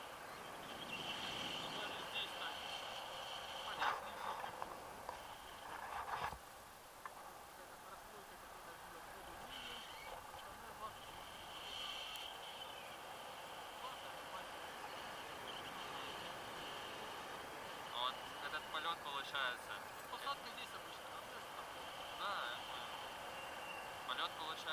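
Wind rushes past during a paraglider flight.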